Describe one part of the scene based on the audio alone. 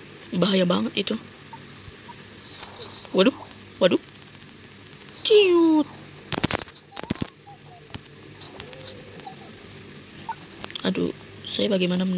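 A boy speaks close to a microphone in short, excited bursts.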